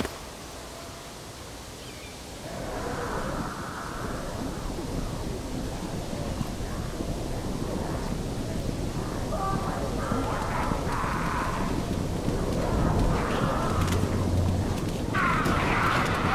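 Blades clash and strike in a fight.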